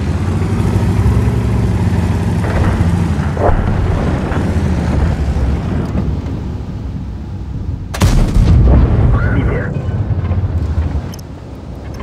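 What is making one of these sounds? A tank engine rumbles and roars.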